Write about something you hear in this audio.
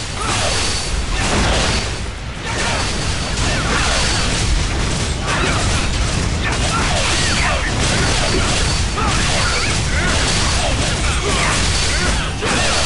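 Magic blasts whoosh and crackle again and again.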